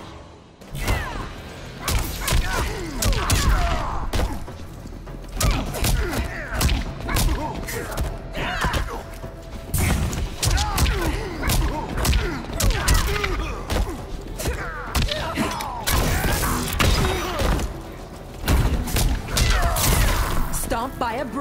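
Heavy punches and kicks land with loud thuds and smacks.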